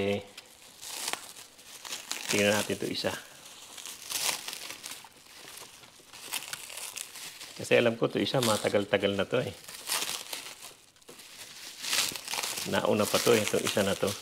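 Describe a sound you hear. Leaves rustle as hands handle a plant.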